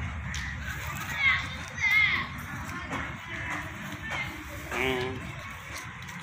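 Children's voices call out nearby outdoors.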